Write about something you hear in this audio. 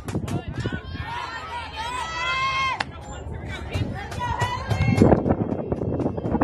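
Young women on the field shout and cheer from a distance.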